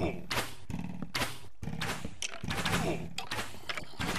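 A sword strikes a skeleton creature in a video game.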